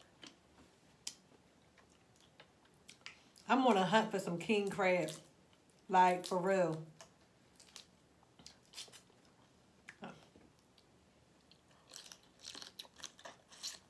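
Food crunches and clicks as a young woman eats close to a microphone.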